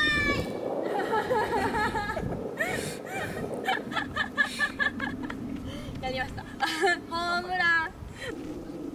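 A young woman laughs and talks with animation nearby.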